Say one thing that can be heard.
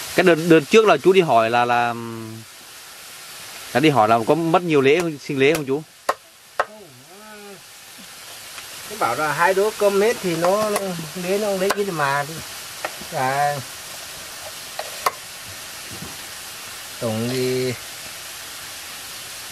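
A spoon scrapes against a wok.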